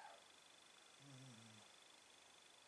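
A pigeon coos softly and low, close by.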